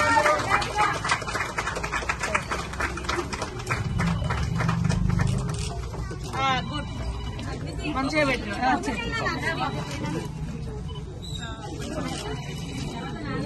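Men and women chatter close by in a crowd.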